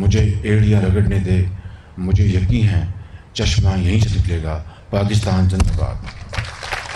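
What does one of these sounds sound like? A man speaks formally into a microphone over loudspeakers.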